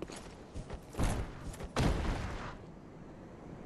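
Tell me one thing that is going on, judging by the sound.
A body thuds to the ground.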